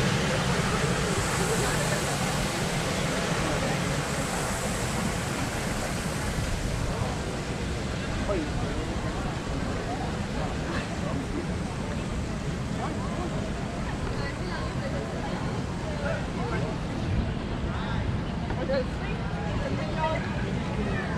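A crowd of people chatters faintly in the distance.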